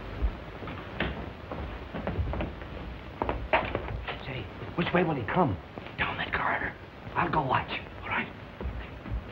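A man speaks in hushed, urgent tones.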